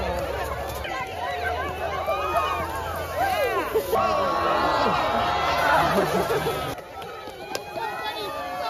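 A crowd of adults and children cheers and shouts outdoors.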